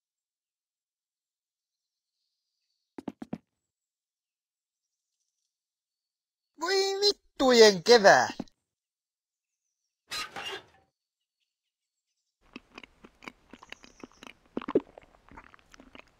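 Tin cans clatter and knock on a wooden floor.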